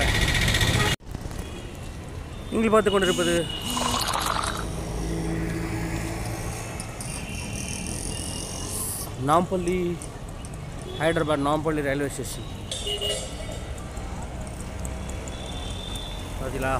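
Traffic and auto rickshaw engines rumble along a busy road.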